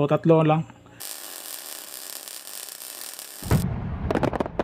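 A sparkler fizzes and crackles.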